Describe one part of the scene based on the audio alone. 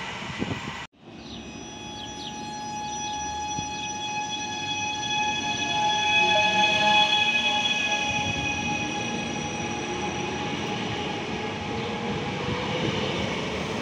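A train's brakes squeal with steady high whines.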